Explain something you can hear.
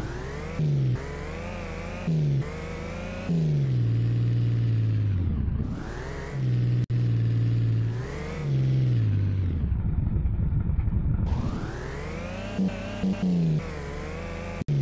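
A car engine revs up and down, changing pitch as it speeds along.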